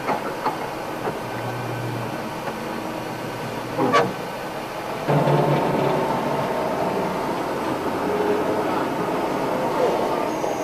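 An aircraft engine drones steadily, growing louder partway through.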